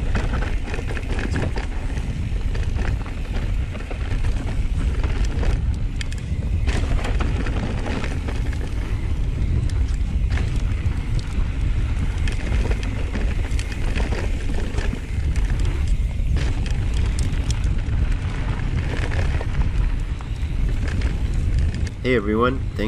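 Wind rumbles loudly across a close microphone.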